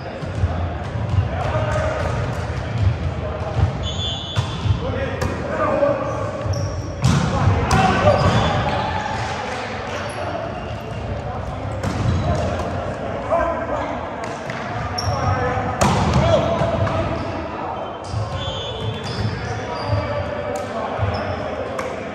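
Young men call out to one another, echoing in a large hall.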